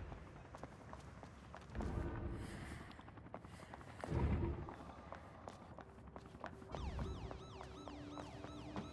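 Footsteps tap on a wet street.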